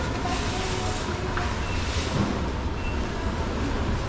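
Dried herbs rustle as a hand scoops through them.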